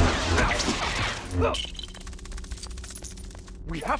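A lightsaber hums and swooshes.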